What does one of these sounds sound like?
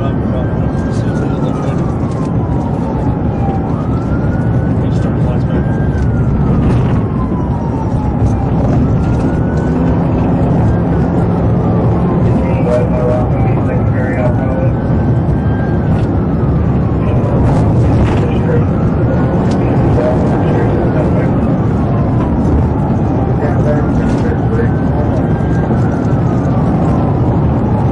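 A police car's engine and tyres roar on the road at high speed.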